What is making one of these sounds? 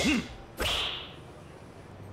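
A golf club strikes a ball with a sharp whack.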